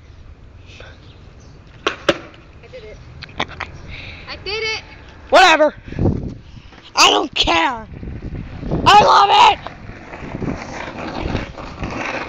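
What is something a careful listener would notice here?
A skateboard rolls on asphalt.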